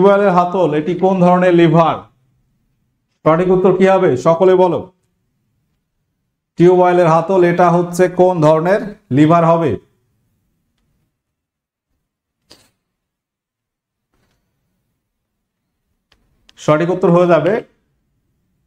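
A young man speaks with animation into a nearby microphone, pausing between phrases.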